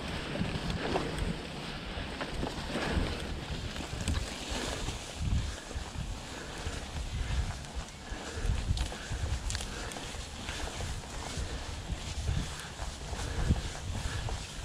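Bicycle tyres roll over rough grassy ground with bumps and rattles.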